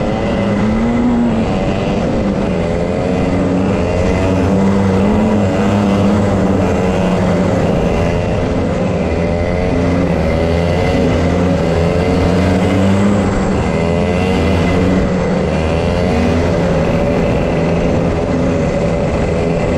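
Go-kart engines buzz loudly and rise and fall in pitch close by.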